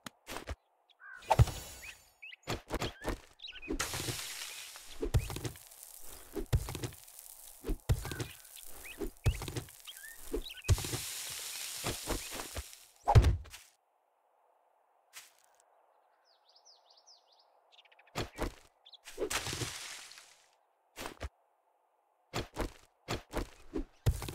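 A stone hoe strikes and scrapes dry dirt.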